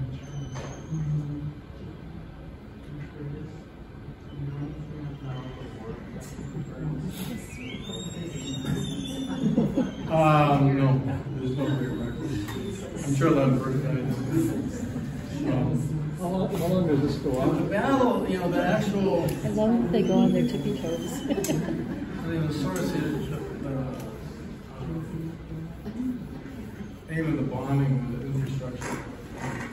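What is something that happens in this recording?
An elderly man talks calmly and at length in a room.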